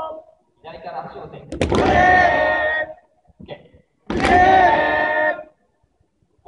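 Young men shout loudly close by in a large echoing hall.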